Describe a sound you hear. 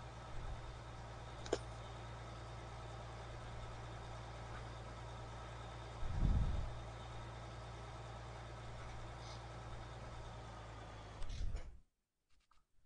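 A tractor engine hums steadily at low pitch.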